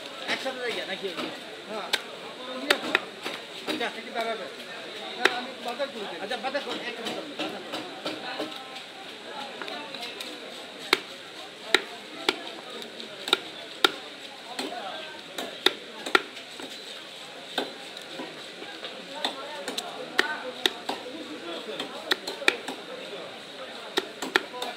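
A knife slices through fish flesh with a soft wet scrape.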